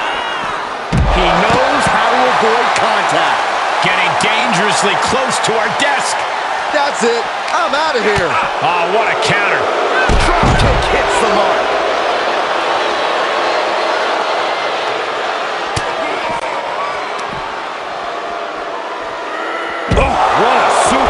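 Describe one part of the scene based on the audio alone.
Heavy thuds of bodies slamming onto a hard floor.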